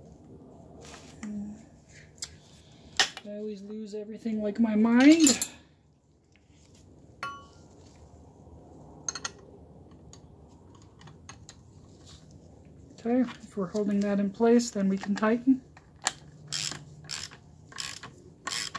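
Metal tools clink and tap against a metal part.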